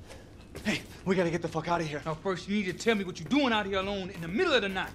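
A man speaks firmly and close by.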